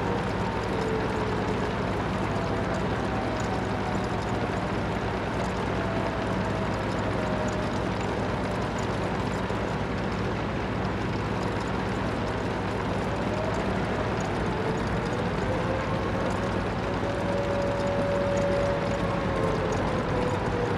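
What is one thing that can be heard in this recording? Tank treads clatter over the road.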